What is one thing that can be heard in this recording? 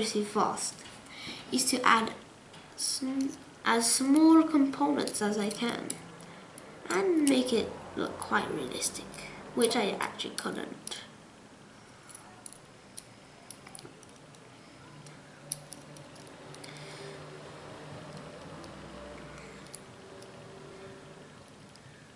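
Small metal parts click and clink together in someone's hands.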